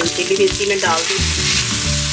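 Chopped vegetables splash into hot oil with a loud hiss.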